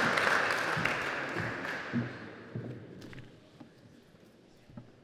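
An audience applauds and the clapping slowly fades.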